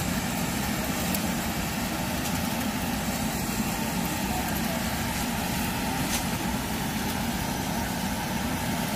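A battery-electric walk-behind sweeper hums and brushes over asphalt.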